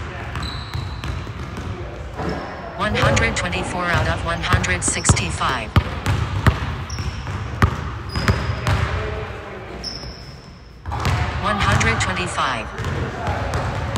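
A basketball thuds against a backboard and rim.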